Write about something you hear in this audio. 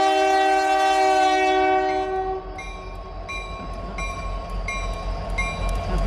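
A diesel locomotive engine rumbles as it rolls closer.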